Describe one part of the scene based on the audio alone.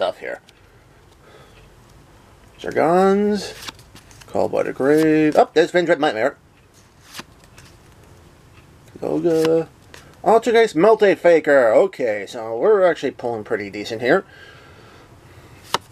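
Trading cards slide against each other as they are flipped through.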